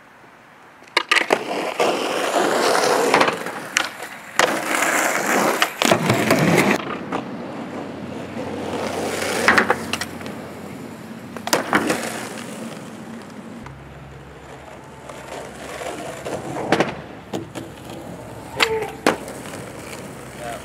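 A skateboard clacks sharply as it hits the ground.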